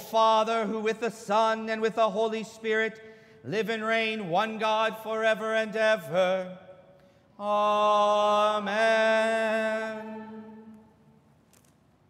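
A man chants in a sung voice through a microphone, echoing in a large hall.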